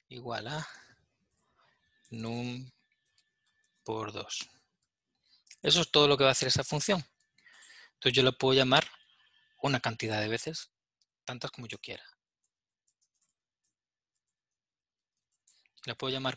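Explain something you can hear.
A man explains calmly through a microphone, in short phrases with pauses.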